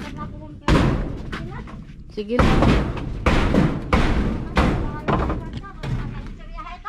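A blade chops hard into wood with loud, repeated thuds.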